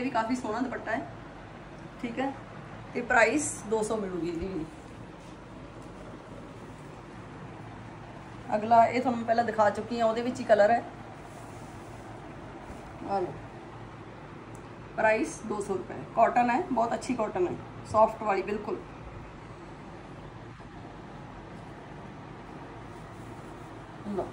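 Fabric rustles as cloth is unfolded and handled.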